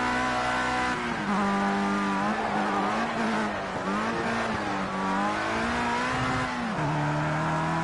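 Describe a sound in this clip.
A racing car engine drops and blips as the driver brakes and downshifts for a corner.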